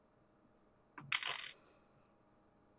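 A young woman exclaims in surprise over an online call.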